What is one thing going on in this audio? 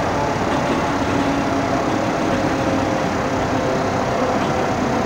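A train's electric motors hum steadily as the train rolls along the track.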